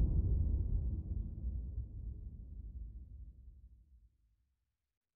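A deep magical rumble swirls and slowly fades.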